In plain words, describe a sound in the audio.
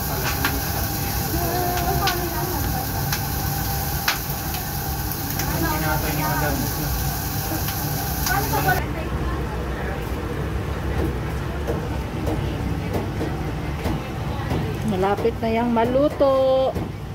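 Hot oil sizzles and bubbles steadily in a pot.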